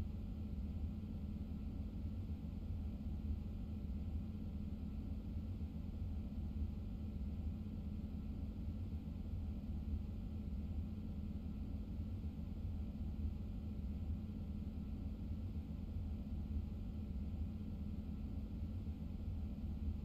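A train engine hums low and steady while the train rolls along the track.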